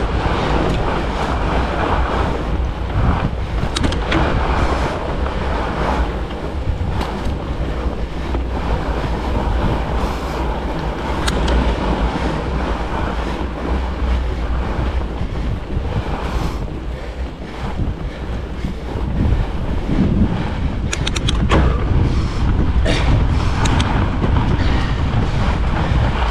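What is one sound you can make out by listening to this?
Fat bike tyres crunch over packed snow.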